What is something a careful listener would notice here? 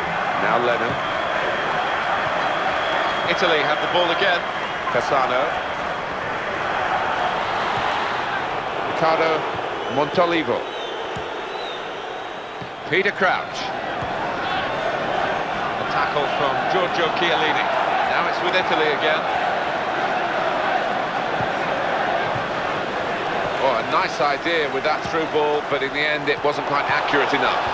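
A football is kicked with dull thumps now and then.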